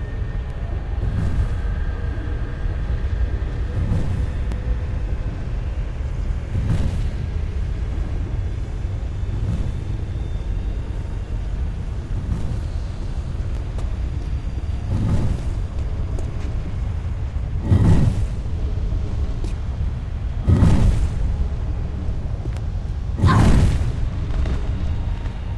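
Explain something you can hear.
Fire roars with a low, steady rumble.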